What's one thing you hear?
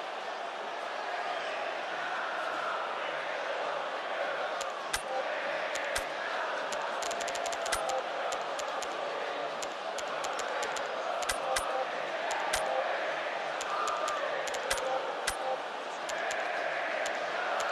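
A stadium crowd murmurs and roars in the background.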